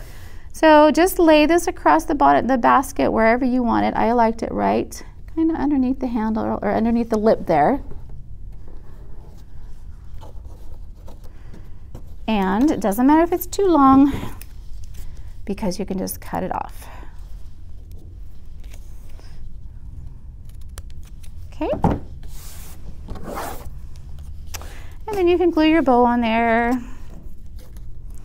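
Paper rustles softly as hands handle it.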